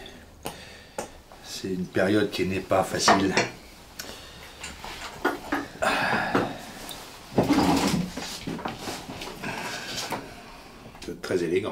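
Wine glugs as it pours from a bottle into a glass.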